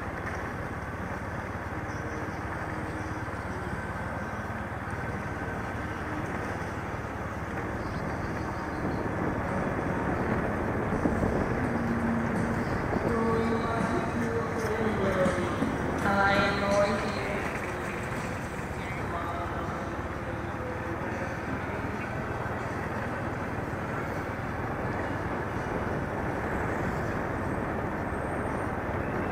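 Traffic hums steadily along a wet street outdoors.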